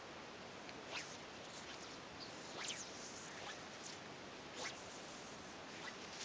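A fishing reel clicks and whirs as a line is wound in.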